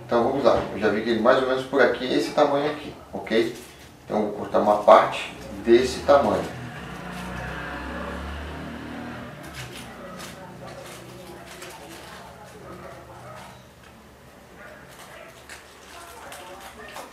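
Aluminium foil crinkles softly as it is handled and folded.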